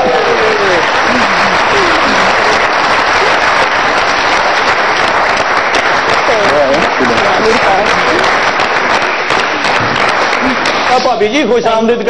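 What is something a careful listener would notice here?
A studio audience claps and cheers loudly.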